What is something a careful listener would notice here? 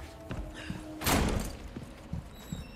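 A heavy wooden door creaks and swings open.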